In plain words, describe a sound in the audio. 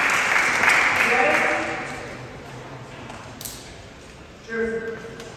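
A man talks at a distance in an echoing hall.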